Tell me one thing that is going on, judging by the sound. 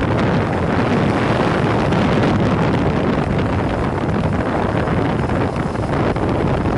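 A motorcycle engine hums steadily while riding along a street.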